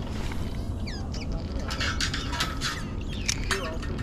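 A fishing reel whirs as line is cast out.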